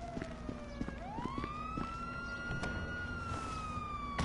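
A car engine starts and revs up, then hums steadily.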